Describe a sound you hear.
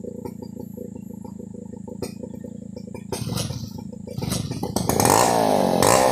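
A chainsaw engine idles nearby, then revs up loudly and cuts.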